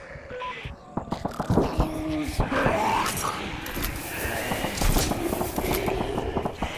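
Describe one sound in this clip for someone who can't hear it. Footsteps thud on a hard tiled floor.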